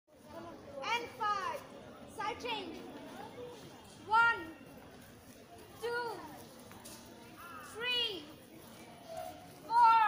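A woman calls out loud commands outdoors in short, sung bursts.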